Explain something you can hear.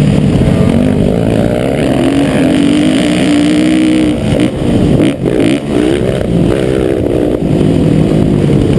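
A dirt bike engine revs loudly close by, rising and falling in pitch.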